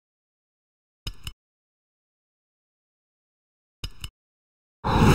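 A short menu blip sounds twice.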